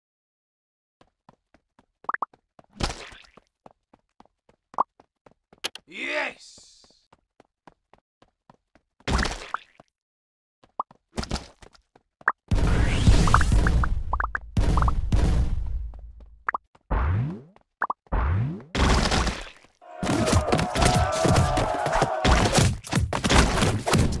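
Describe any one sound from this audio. Quick cartoonish pops and splats sound again and again.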